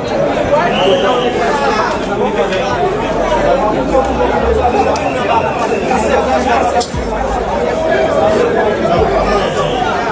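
A crowd of young men and women talks and shouts loudly nearby, outdoors.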